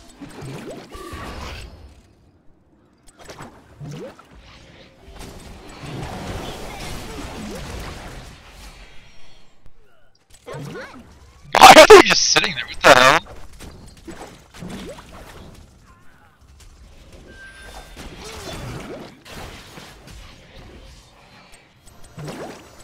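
Fighting sound effects from a video game clash and burst in short bursts.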